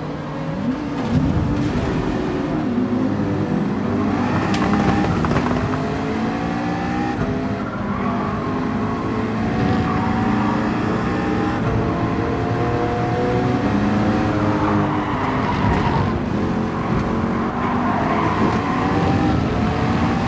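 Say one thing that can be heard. A racing car engine roars loudly, revving up and down through the gears.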